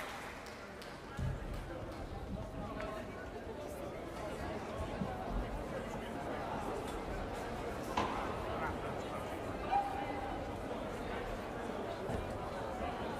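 A large crowd murmurs and chatters in a big echoing hall.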